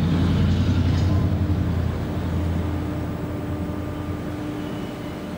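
A ship's engine idles with a low, steady hum.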